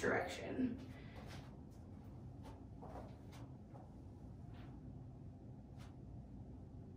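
Hands and feet tap and shift on an exercise mat.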